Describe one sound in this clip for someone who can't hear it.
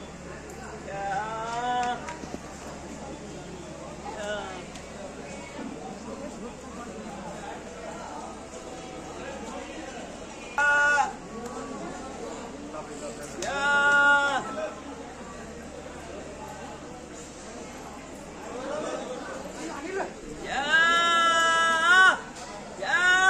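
A man nearby calls out in long, drawn-out cries.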